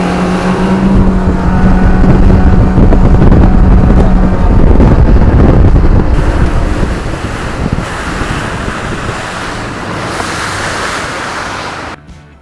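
Water rushes and splashes against the hull of a speeding boat.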